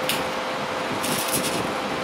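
An arc welder crackles and sizzles briefly.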